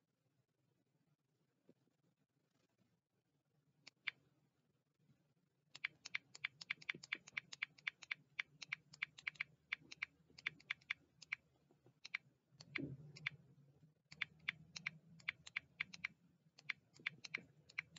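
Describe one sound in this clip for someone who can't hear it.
A young man speaks quietly close to the microphone.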